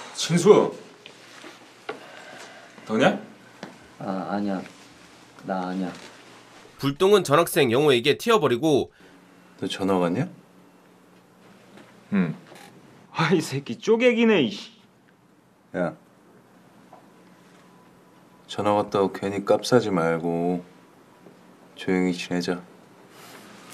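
Young men talk tensely in a room.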